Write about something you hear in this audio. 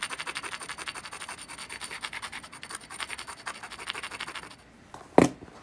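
A stone rasps quickly along the edge of a glassy rock.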